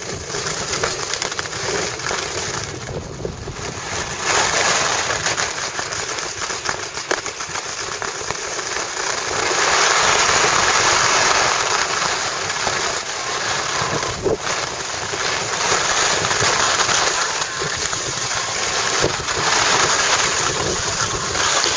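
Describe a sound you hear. A snowboard scrapes and hisses over packed snow.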